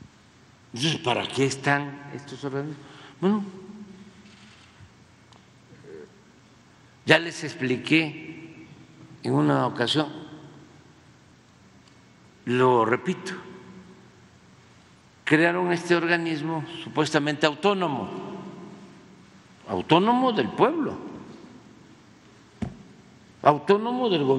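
An elderly man speaks slowly into a microphone, with pauses, in a reverberant hall.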